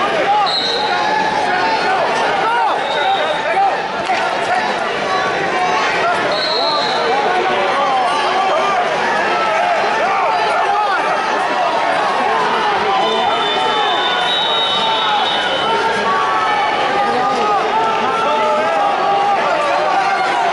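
A large crowd chatters and shouts in a big echoing hall.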